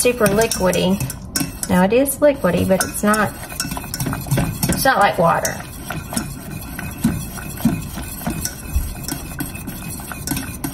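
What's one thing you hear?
A whisk scrapes and clinks against a metal pot.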